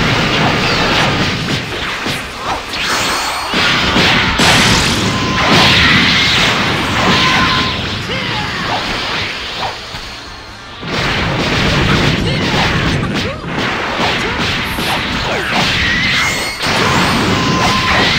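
Punches and impacts thud and crash in rapid bursts.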